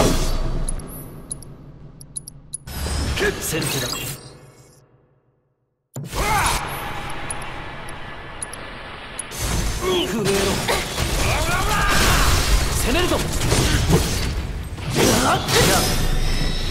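Blades clash and metal strikes ring out.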